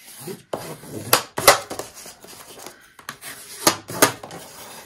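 A folding tool scrapes along a crease in stiff paper.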